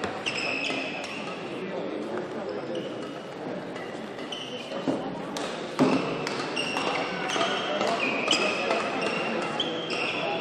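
A crowd murmurs quietly in a large echoing hall.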